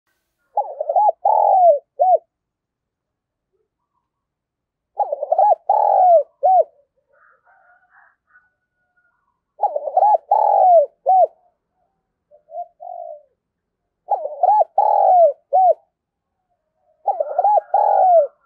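A dove coos in a repeated, rolling phrase close by.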